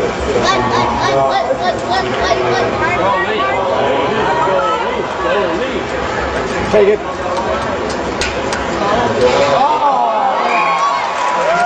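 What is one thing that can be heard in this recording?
Several men talk loudly nearby in a large echoing hall.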